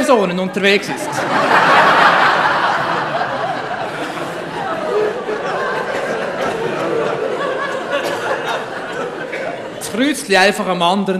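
An audience applauds loudly, then the applause slowly fades.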